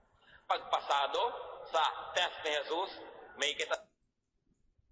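A middle-aged man speaks calmly into a microphone, heard through a television speaker.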